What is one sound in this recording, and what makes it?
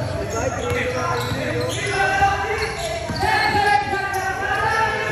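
Young men shout to each other across the court.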